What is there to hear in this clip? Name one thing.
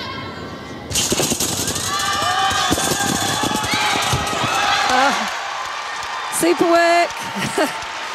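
A crowd cheers and applauds in a large echoing hall.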